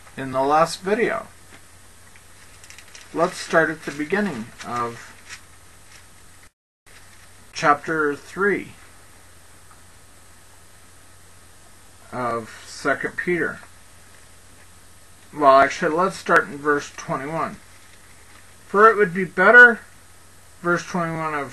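A middle-aged man speaks calmly and slowly into a close microphone, with pauses.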